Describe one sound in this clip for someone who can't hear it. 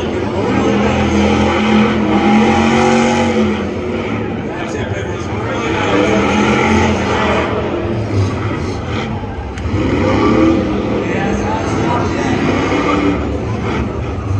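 Tyres squeal and hiss as a car spins its wheels.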